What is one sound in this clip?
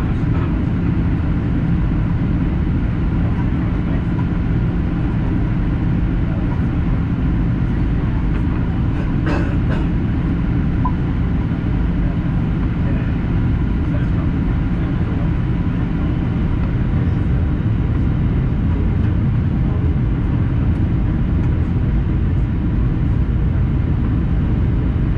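A jet engine roars steadily with a deep, constant drone, heard from inside the cabin.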